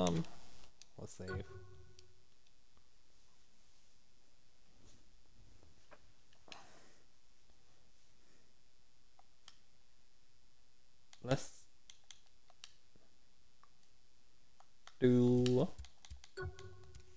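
A short electronic menu chime sounds.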